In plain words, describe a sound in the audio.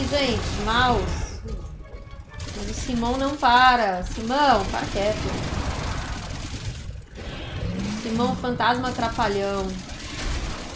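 A young person speaks with animation into a nearby microphone.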